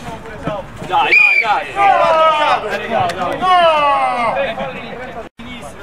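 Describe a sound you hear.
Young men shout and cheer loudly outdoors.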